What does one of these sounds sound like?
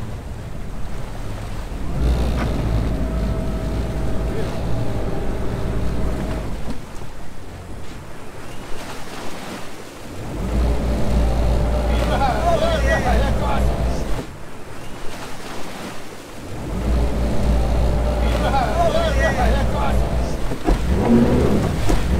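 Water churns and splashes behind a boat.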